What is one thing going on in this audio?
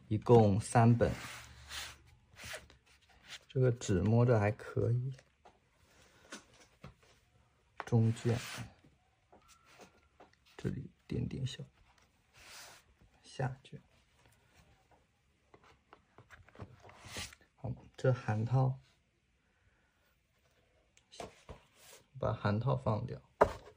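Heavy books thump softly as they are set down and moved.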